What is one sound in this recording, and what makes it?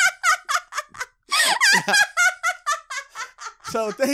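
A young woman laughs loudly into a close microphone.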